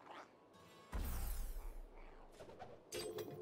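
A magic portal whooshes open with a deep rumble.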